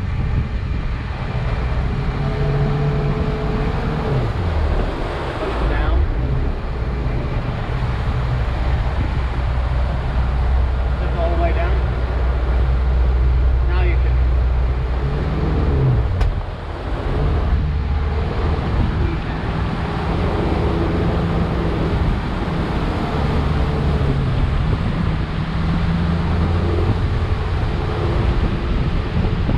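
A motorboat engine drones steadily at speed.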